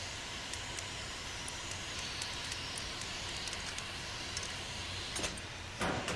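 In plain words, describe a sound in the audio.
A combination lock's dials click as they turn.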